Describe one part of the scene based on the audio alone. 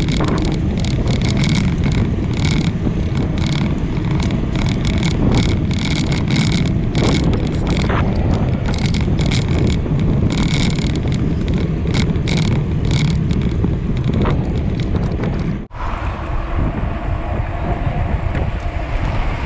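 Wind rushes loudly past a moving cyclist.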